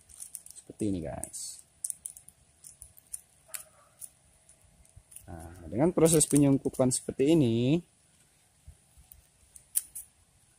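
A plastic sleeve rustles and crinkles between fingers.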